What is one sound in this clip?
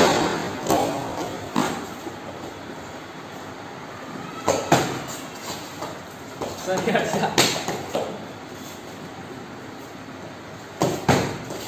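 Bare feet thump and slap on a padded mat during sparring.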